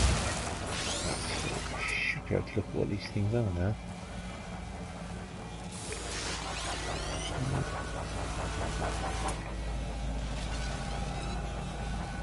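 A spaceship engine roars as the ship lifts off.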